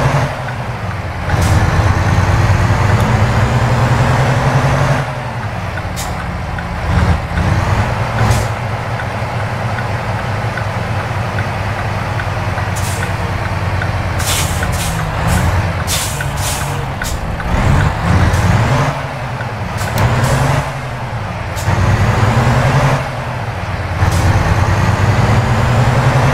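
A truck engine hums and rumbles steadily.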